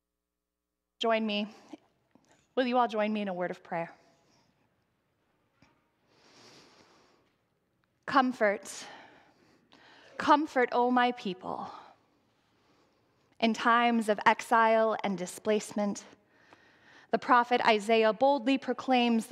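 A woman speaks calmly and slowly into a microphone, in a softly echoing hall.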